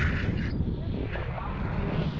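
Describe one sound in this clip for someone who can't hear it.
A man speaks loudly over the wind.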